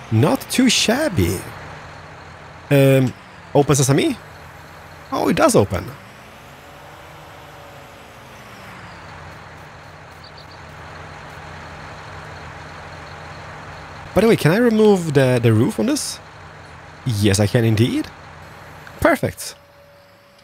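A tractor engine idles with a steady low hum.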